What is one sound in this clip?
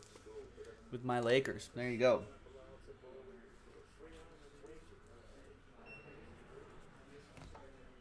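Plastic card sleeves rustle and click in a man's hands.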